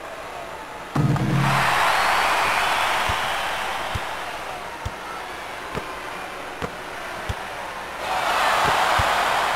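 A crowd cheers loudly, swells and fades, then roars again.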